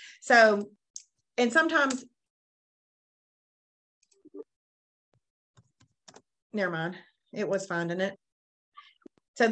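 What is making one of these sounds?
A woman speaks calmly into a close microphone, in short phrases with pauses.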